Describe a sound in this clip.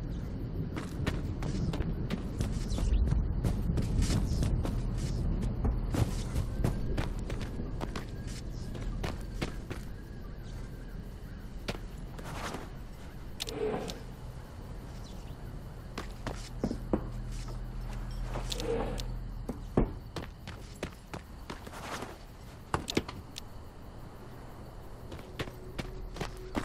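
Footsteps crunch steadily on dirt and gravel.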